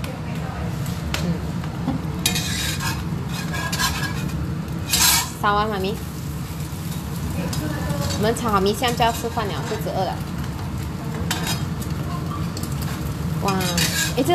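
A spatula scrapes against a metal wok.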